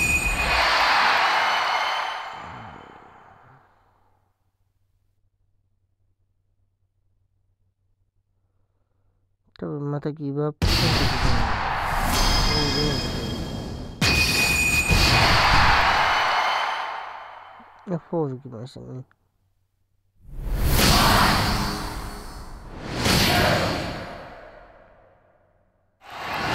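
A crowd cheers loudly in bursts.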